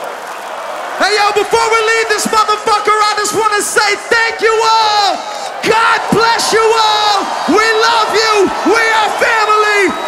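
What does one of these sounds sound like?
A man sings powerfully into a microphone through loudspeakers.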